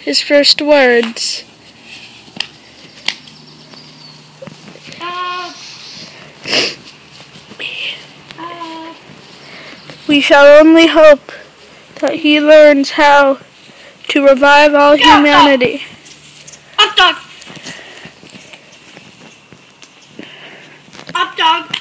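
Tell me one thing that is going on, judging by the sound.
A young boy talks and calls out with animation, close by, outdoors.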